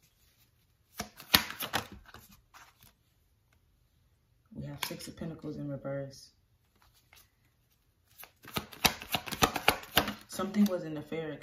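Playing cards are shuffled with quick, crisp flicks.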